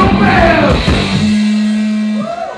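A man shouts a song into a microphone.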